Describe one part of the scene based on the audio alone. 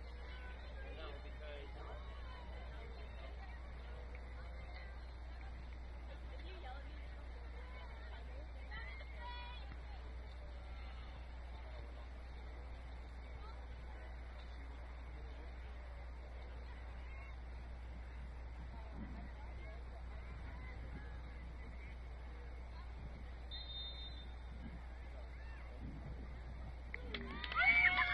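Distant players shout across an open field outdoors.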